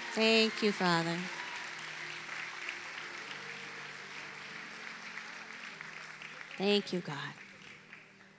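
A woman speaks with feeling through a microphone.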